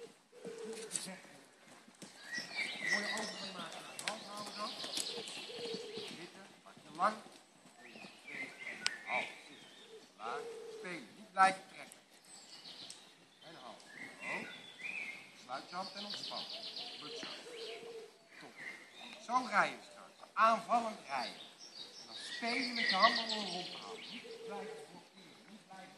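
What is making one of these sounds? A woman speaks and calls out nearby, outdoors.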